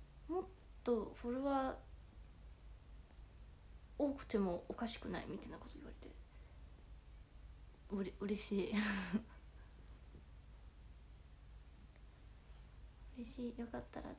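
A young woman speaks casually and close by, in short bursts with pauses.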